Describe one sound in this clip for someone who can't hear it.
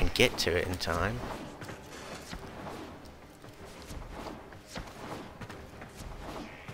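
Quick footsteps patter along a hard floor.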